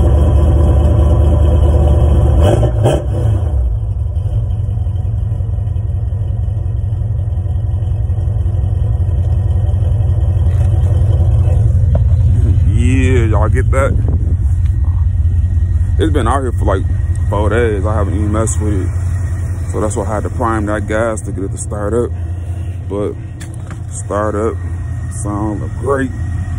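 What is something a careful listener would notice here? A car engine idles with a deep, steady exhaust rumble close by.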